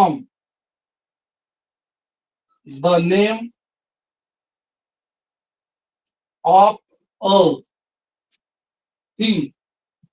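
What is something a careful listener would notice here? A man speaks in short, calm phrases nearby.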